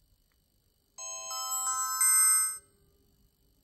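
A smartwatch plays a bright startup melody.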